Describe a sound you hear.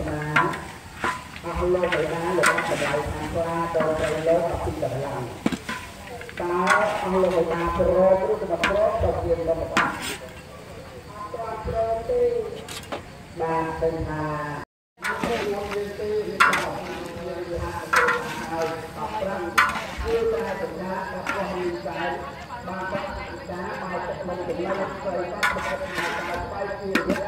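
Meat sizzles in a hot wok.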